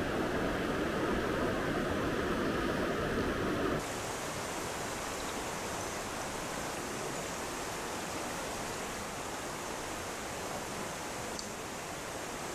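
A shallow river rushes and babbles over stones.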